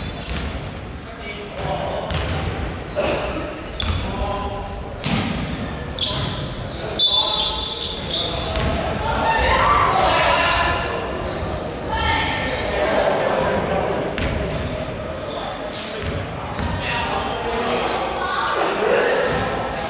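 Sneakers squeak sharply on a wooden court floor in a large echoing hall.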